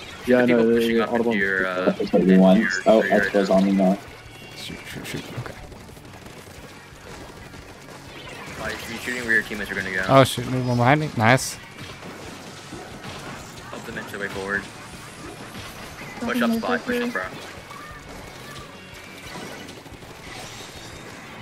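Paint guns fire with quick wet splattering bursts.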